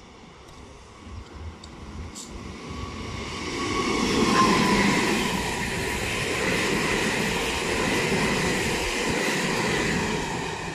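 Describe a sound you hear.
A train approaches and rumbles past on the tracks close by.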